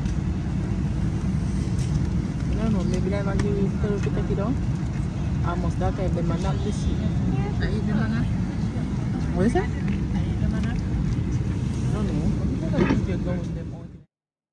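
A woman talks with animation close to a phone microphone.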